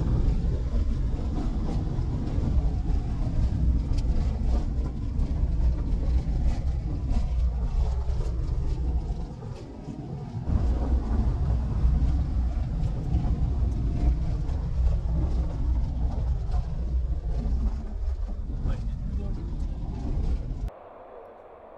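A vehicle rumbles along a bumpy dirt road.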